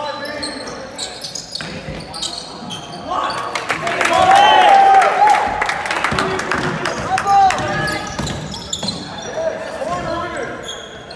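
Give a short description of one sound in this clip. Sneakers squeak sharply on a hardwood floor in a large echoing hall.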